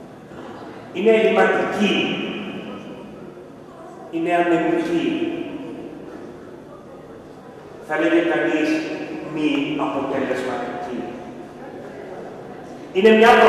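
A middle-aged man chants in long, drawn-out phrases through a microphone, echoing in a large hall.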